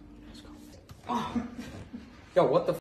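A young man laughs loudly and talks with animation.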